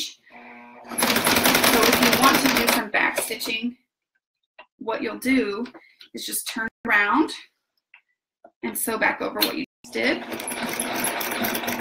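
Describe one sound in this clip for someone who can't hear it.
A sewing machine whirs as it stitches fast.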